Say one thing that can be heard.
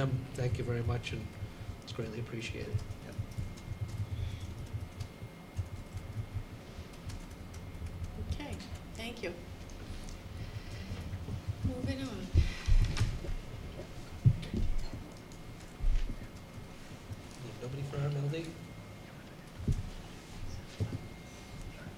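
A middle-aged man speaks calmly into a microphone in a room.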